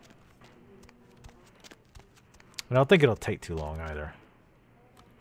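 Footsteps tread on hard stairs.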